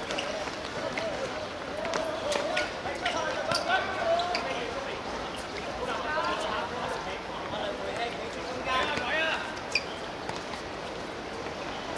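Young players shout and call out across an outdoor court.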